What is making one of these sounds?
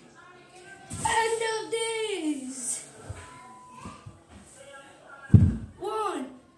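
A young boy's body thuds onto a carpeted floor.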